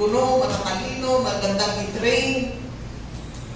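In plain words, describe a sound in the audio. A woman speaks into a microphone, heard through loudspeakers.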